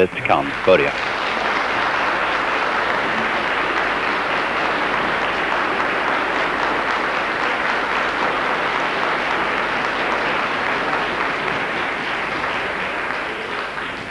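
A large crowd of men clamours and cheers steadily.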